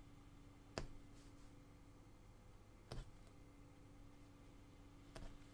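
A punch needle pokes through taut cloth with sharp pops.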